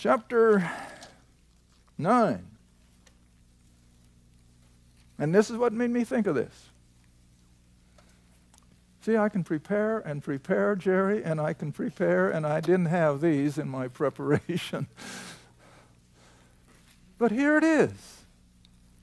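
An elderly man speaks calmly into a microphone, in short bursts with pauses.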